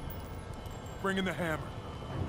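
A man speaks gruffly into an earpiece.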